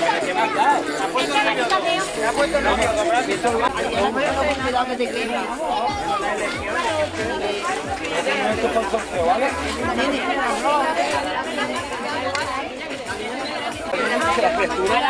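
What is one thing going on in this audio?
A crowd of men and women chatter and laugh close by outdoors.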